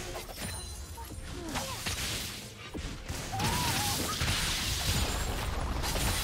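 Game characters clash with sharp impact sounds.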